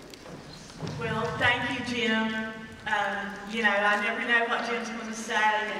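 A woman speaks calmly through a loudspeaker in a large echoing hall.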